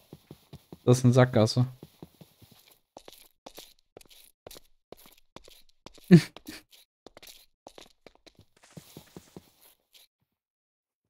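Footsteps tap quickly on stone and grass.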